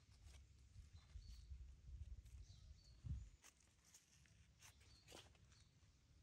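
Dry leaves rustle as a small monkey moves about.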